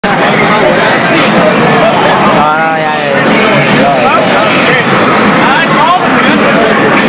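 A crowd of young people chatters loudly nearby.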